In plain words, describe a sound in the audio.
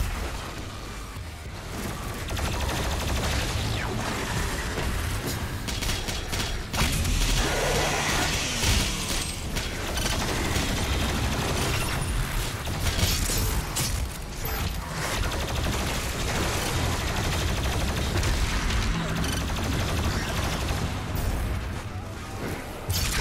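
Heavy gunfire blasts again and again.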